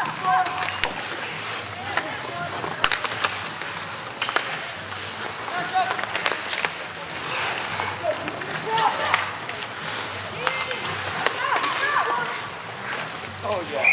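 Young players shout and call out across an echoing rink.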